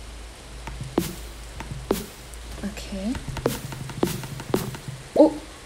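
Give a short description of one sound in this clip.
An axe chops wood with sharp knocks.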